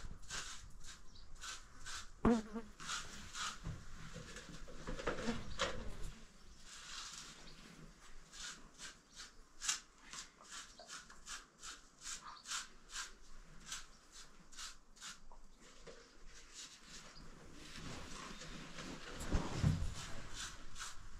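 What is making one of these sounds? Wet plaster scrapes and slaps as a hand smears it onto a wall.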